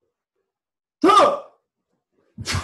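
A man gives a short, sharp shout close by.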